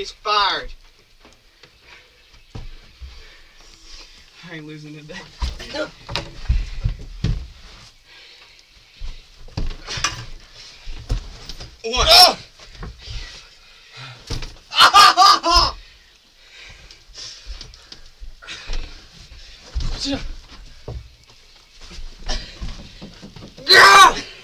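Young men talk and shout loudly nearby.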